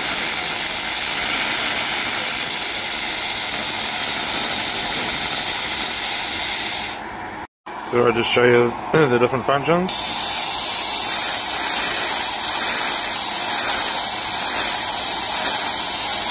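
A machine whirs with a steady hiss of air.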